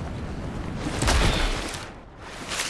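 A heavy thump sounds from a landing on the ground.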